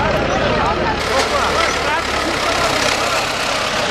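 A tractor engine rumbles close by.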